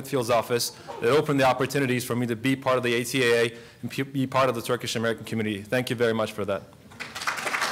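A young man speaks calmly through a microphone in a large room.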